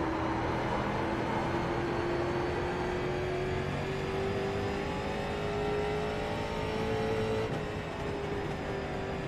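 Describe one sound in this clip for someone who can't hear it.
A race car engine roars steadily at high speed, its pitch slowly rising and then easing off.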